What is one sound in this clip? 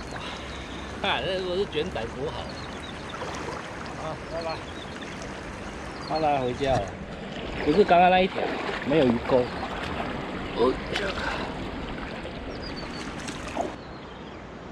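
A man talks calmly close by, outdoors.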